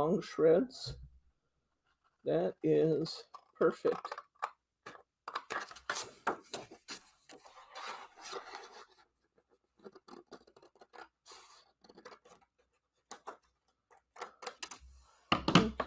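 Scissors snip through card stock.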